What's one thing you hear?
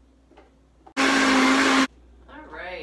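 A blender whirs briefly and loudly.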